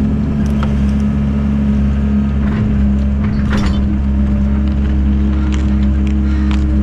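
A digging bucket scrapes and crunches into soil and roots.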